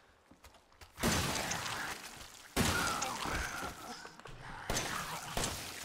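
A pistol fires several loud shots that echo through a large room.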